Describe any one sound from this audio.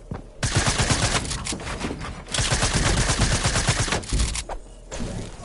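Wooden building pieces clatter rapidly into place in a video game.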